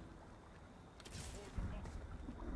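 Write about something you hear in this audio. A short shimmering chime sounds as a game piece is placed.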